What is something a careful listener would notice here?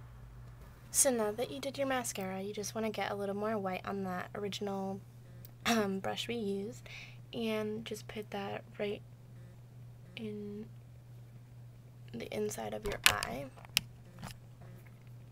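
A young woman talks close by, calmly and brightly.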